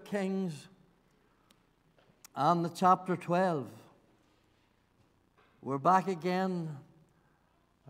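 An elderly man speaks slowly and calmly through a microphone, pausing between phrases.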